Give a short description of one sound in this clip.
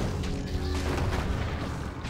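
A magic spell bursts with a fiery whoosh.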